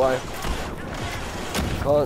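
An explosion booms in a video game.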